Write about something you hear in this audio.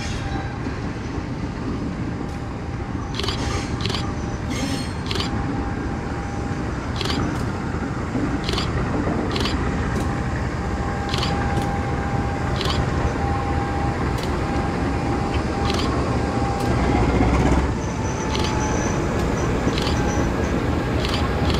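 A diesel locomotive rumbles as it slowly draws near.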